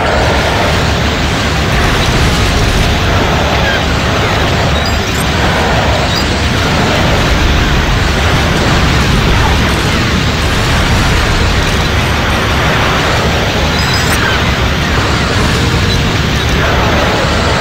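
Laser blasts zap and fire.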